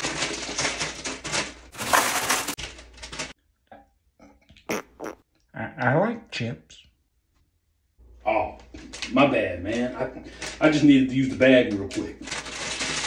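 A chip bag crinkles loudly in a man's hands.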